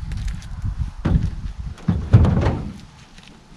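A log thumps onto a truck's tailgate.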